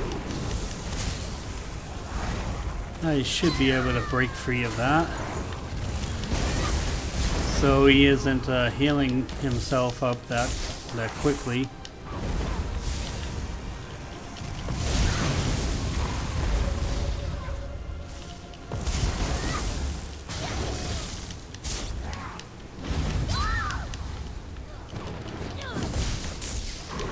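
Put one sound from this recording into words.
Blows and blasts thud repeatedly.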